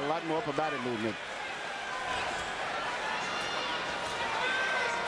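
A large crowd murmurs and cheers in a big arena.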